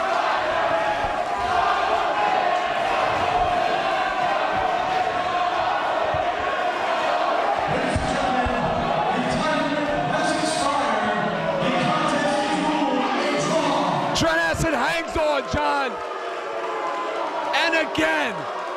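A large crowd cheers and shouts throughout, echoing in a big hall.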